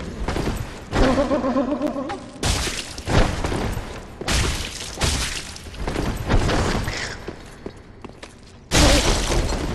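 A creature screeches in a high, wavering cry.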